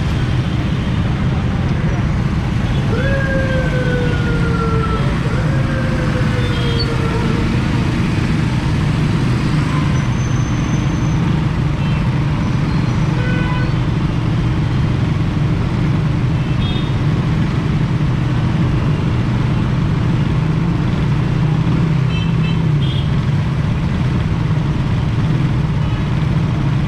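Busy street traffic hums steadily all around.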